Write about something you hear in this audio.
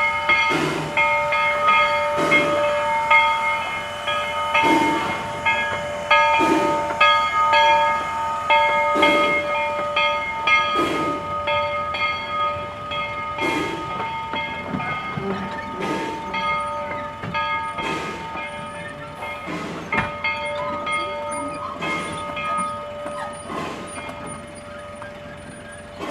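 A steam train rolls slowly past and gradually fades.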